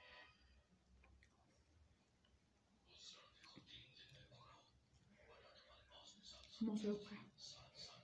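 Fingers squish and rustle through soft food on a plate.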